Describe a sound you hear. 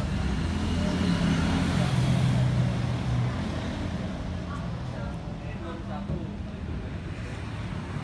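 A car engine idles close by with a low, steady hum.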